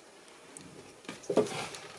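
A jar scrapes and clinks against a shelf.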